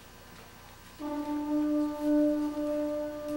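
A concert band starts playing sustained chords in a large echoing hall.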